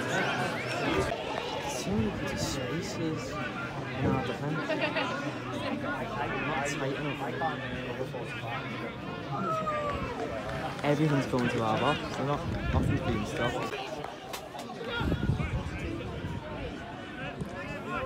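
A crowd of spectators chatters and calls out loudly outdoors.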